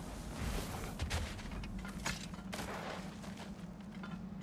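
Branches rustle and snap as someone pushes through them.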